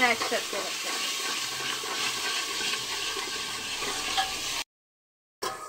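Food sizzles and crackles in hot oil in a pan.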